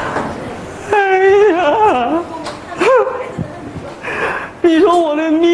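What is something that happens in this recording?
A young man cries out and sobs loudly through a microphone.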